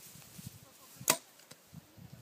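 A bowstring snaps sharply as an arrow is shot.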